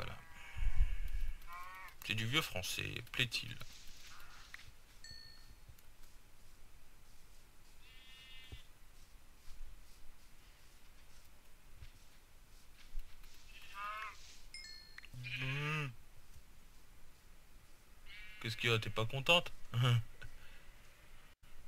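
Footsteps rustle through grass.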